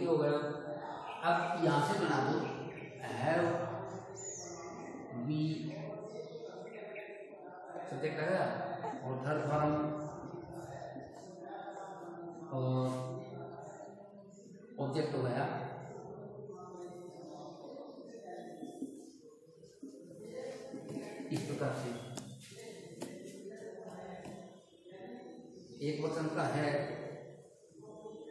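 An elderly man speaks calmly and clearly, as if teaching, close by.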